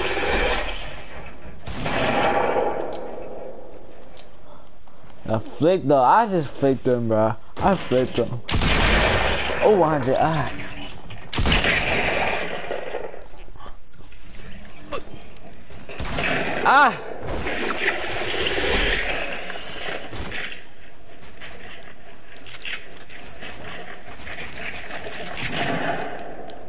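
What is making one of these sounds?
Wooden walls and ramps are built with quick knocking clatter.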